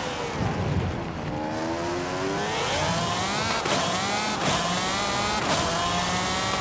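A sports car engine revs up sharply as the car accelerates.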